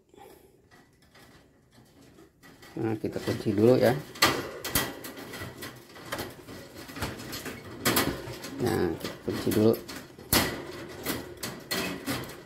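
A metal cage latch clicks and rattles.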